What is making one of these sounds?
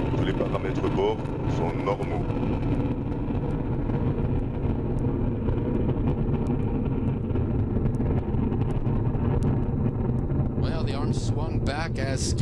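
A rocket engine roars loudly with a deep, steady rumble.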